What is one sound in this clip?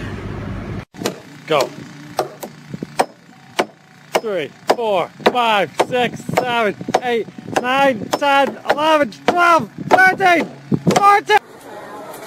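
A hammer strikes nails into wood with sharp, ringing blows.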